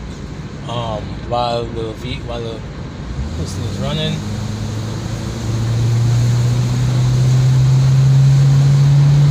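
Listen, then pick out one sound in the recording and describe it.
A car engine hums steadily, growing louder and higher partway through.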